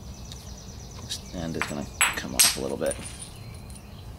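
Stone flakes scrape and grind against each other.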